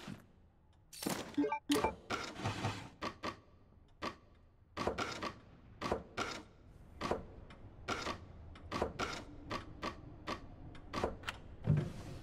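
Wooden blocks clack and slide into place, again and again.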